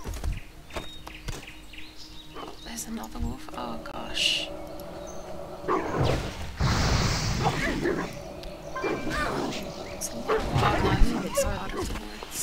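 Blows thud as a fighter strikes a wolf.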